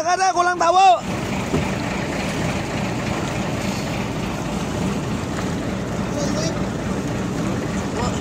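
Choppy sea water laps against a boat's hull.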